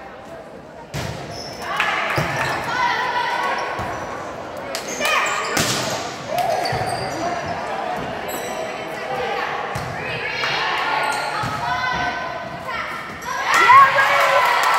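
A volleyball is hit with sharp smacks in a large echoing gym.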